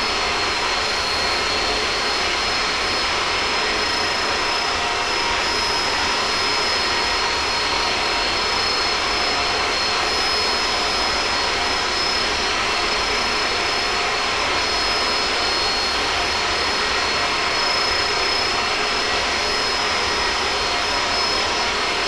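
Jet engines roar steadily as an airliner flies.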